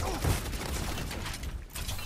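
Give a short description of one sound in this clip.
Electric crackling zaps in a video game.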